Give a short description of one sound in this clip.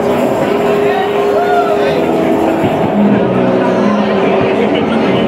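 A band plays loud electric guitars and drums.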